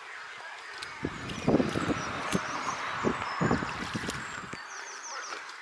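A swan splashes and dabbles in shallow water among reeds.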